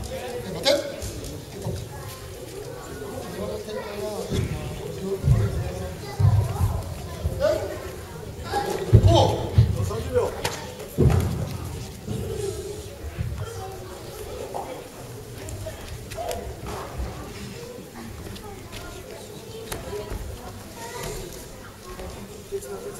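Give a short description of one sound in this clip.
Bodies and feet thump on a padded mat as children spar.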